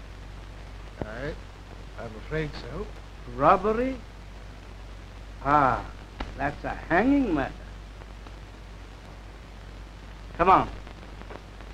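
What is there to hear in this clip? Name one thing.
An elderly man answers in a strained, quavering voice.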